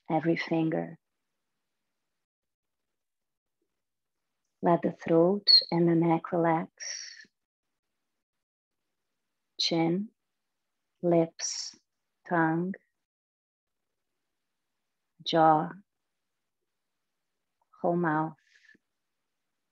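A young woman speaks calmly and slowly through a microphone, with long pauses.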